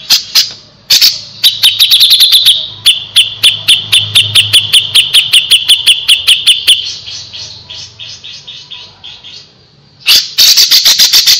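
A songbird sings a fast, sharp, repeated chirping song close by.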